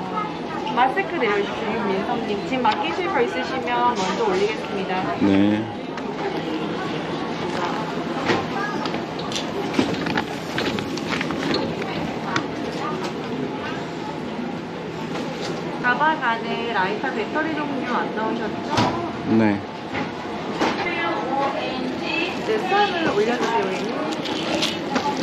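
A young woman speaks politely nearby.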